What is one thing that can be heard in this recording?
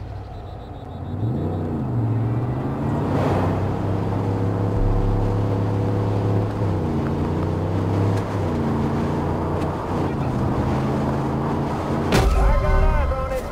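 A car engine revs and roars as it drives.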